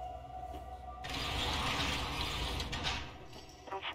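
A metal barred gate creaks and scrapes open.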